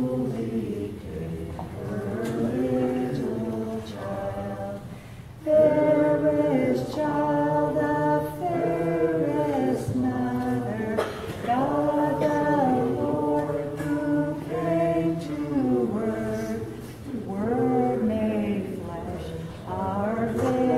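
A group of men and women sing a slow hymn together in an echoing hall.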